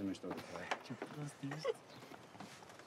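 A man speaks mockingly nearby.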